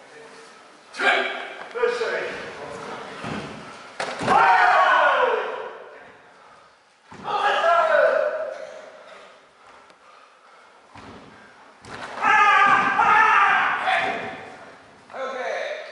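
Men let out loud, sharp shouts in a large echoing hall.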